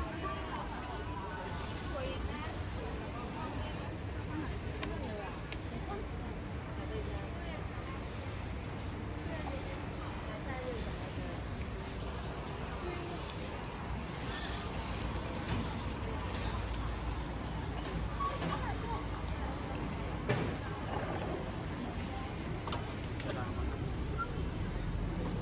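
Crowd chatter murmurs outdoors in a busy street.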